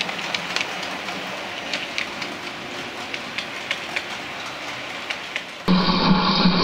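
Model train wheels click over the rails.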